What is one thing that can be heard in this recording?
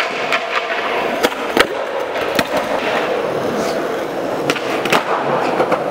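Skateboard wheels roll and rumble over smooth concrete.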